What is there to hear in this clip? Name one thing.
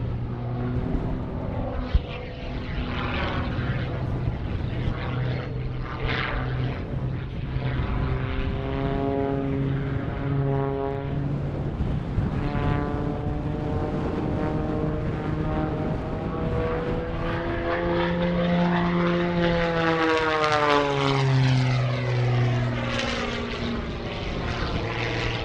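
A propeller plane's engine roars overhead, its pitch rising and falling as it swoops.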